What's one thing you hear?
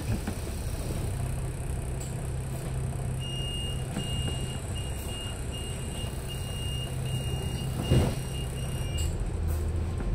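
A bus engine rumbles steadily at idle.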